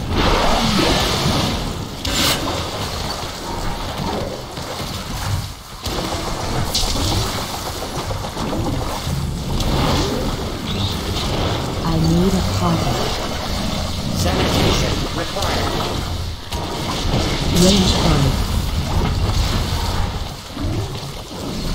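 Video game combat effects clash and boom during a fight.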